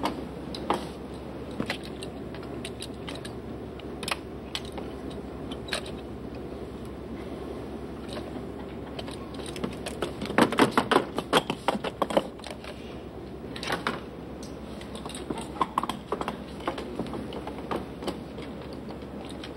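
A small piano plinks a few soft notes.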